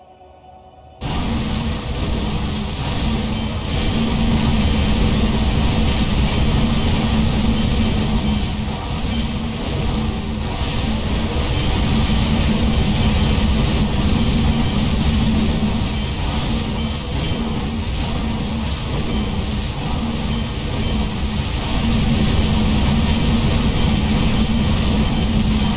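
Magic blasts and explosions crackle and boom without pause.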